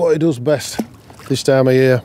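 Water splashes briefly.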